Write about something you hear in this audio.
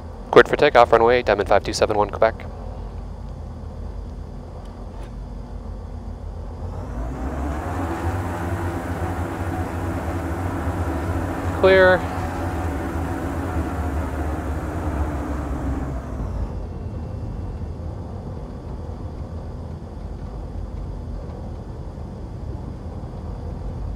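A small propeller plane's engine drones steadily, then swells to a louder roar and settles again.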